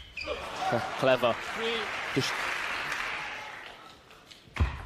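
A crowd applauds and cheers in a large hall.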